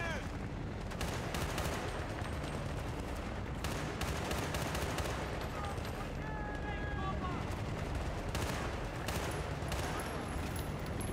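Rapid rifle gunfire cracks in bursts.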